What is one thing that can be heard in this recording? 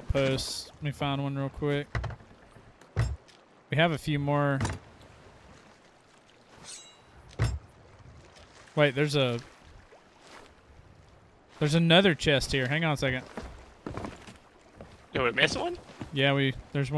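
A man talks with animation into a close microphone, in bursts with pauses.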